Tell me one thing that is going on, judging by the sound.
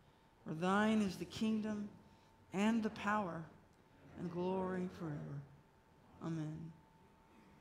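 A woman reads out slowly through a microphone in an echoing hall.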